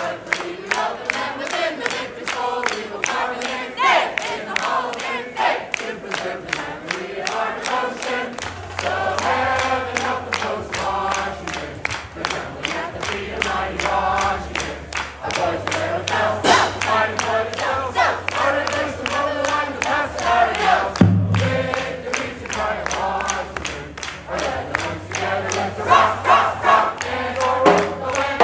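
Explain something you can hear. A marching band plays a brassy tune loudly in a large room.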